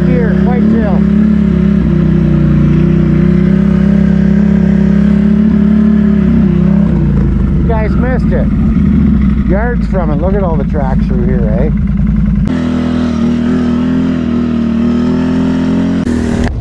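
An engine drones steadily as a snowmobile rides along.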